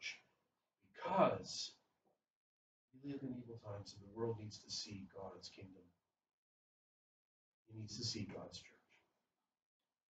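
A man speaks calmly through a microphone, pausing between phrases.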